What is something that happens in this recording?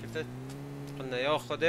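A man speaks briefly into a close microphone.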